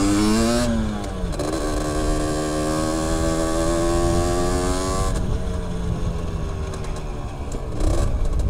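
A motorcycle engine revs and drops in pitch as gears change.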